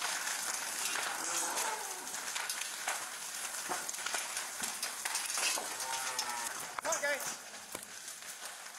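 A dairy cow moos in distress.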